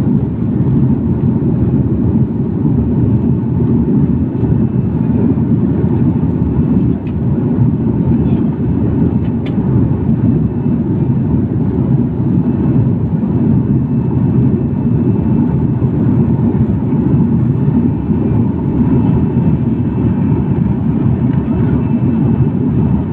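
A jet engine roars with a steady, deep drone inside an airliner cabin.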